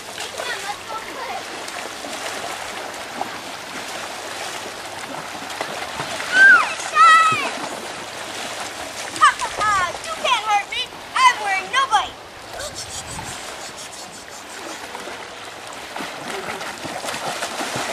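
Water splashes as children wade and play.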